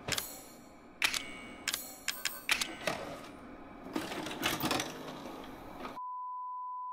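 A videotape clicks and clatters into a player.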